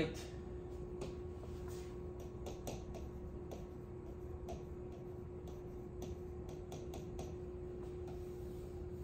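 A marker squeaks and taps on a board.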